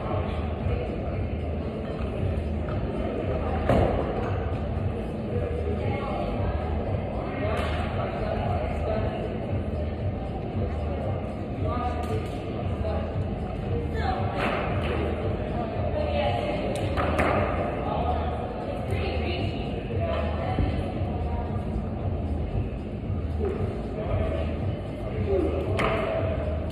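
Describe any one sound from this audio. A climbing rope runs through a belay device.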